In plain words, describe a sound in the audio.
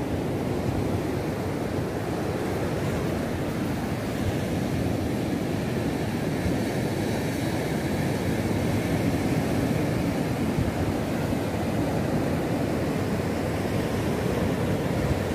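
Waves wash steadily onto a beach.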